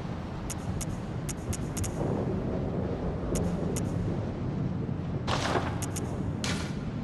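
Short menu clicks tick as a selection moves.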